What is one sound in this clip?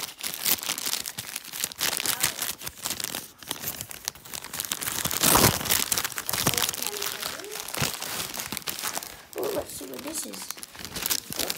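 Wrapping paper crinkles and tears up close.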